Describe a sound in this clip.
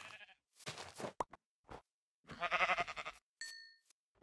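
A sheep bleats nearby.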